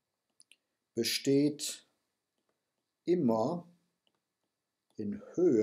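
A man speaks calmly and slowly into a close microphone, with pauses.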